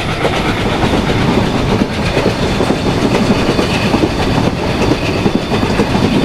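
A train rumbles and clatters steadily along the rails.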